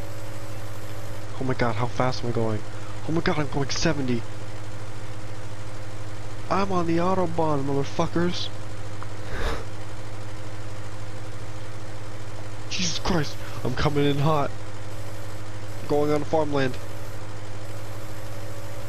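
A forklift engine idles with a steady low hum.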